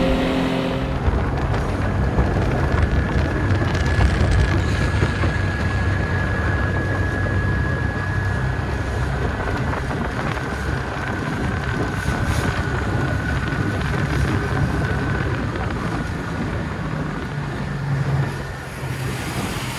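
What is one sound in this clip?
Water slaps and splashes against a boat's hull.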